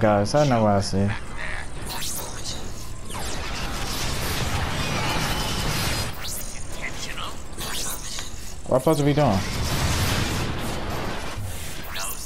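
Blasts hiss and roar.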